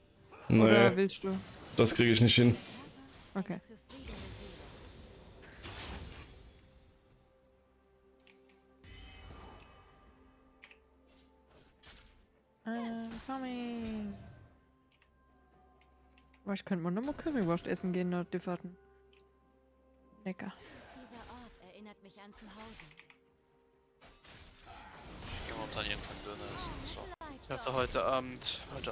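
Magic spells whoosh and crackle during a video game battle.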